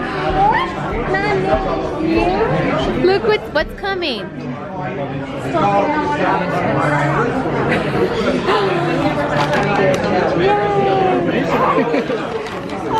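Several people talk and sing loudly in a busy, echoing room.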